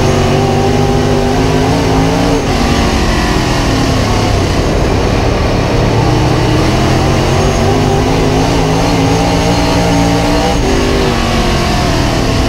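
A race car engine roars loudly close up, revving up and down.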